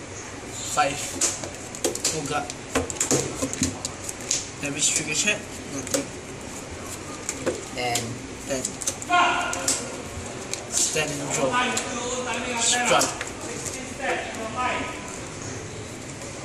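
Sleeved cards rustle as they are shuffled by hand.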